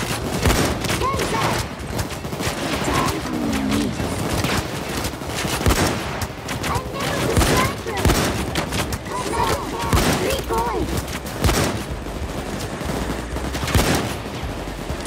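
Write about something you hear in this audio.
Rapid gunshots crack and echo in bursts.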